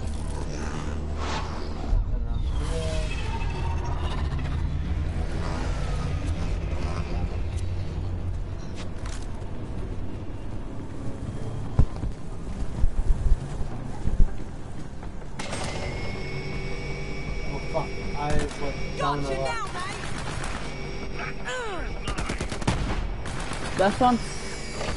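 Game sound effects whoosh and chirp.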